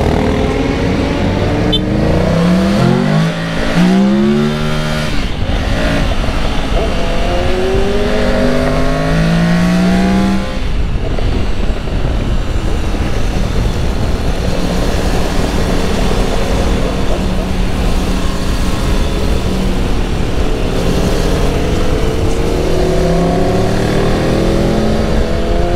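A motorcycle engine revs up and down through the gears close by.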